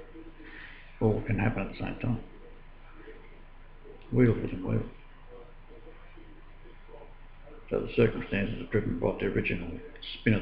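An elderly man speaks calmly and close by, in short bursts.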